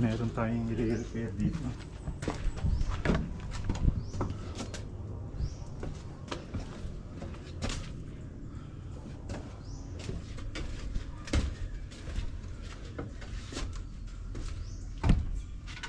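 Footsteps crunch on dry ground and wooden boards.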